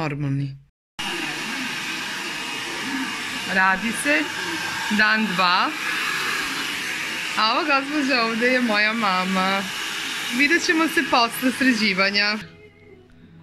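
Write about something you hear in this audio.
A hair dryer blows with a steady roar.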